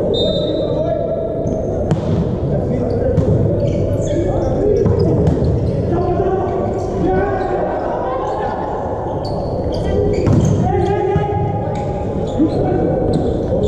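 A volleyball is struck with a hand in a large echoing hall.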